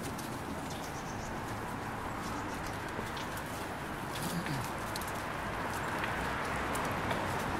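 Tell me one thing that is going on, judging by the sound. Footsteps shuffle on pavement as a group walks.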